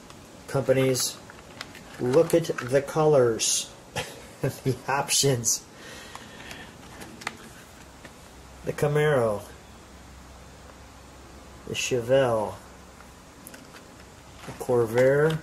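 Stiff pages rustle as they are turned.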